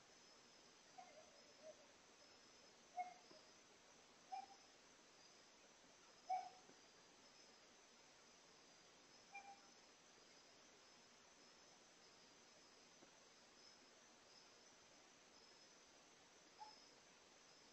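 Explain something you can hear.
A cat meows softly now and then, close by.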